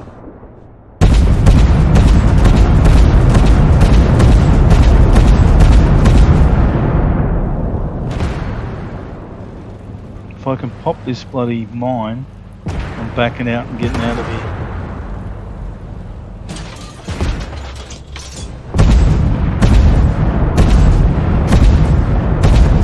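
A tank cannon fires with a loud boom and a rumbling blast.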